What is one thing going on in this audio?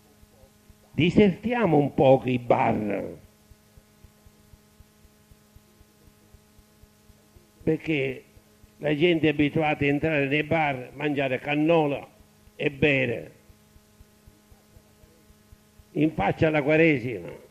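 An elderly man speaks calmly in short phrases through a microphone, with long pauses.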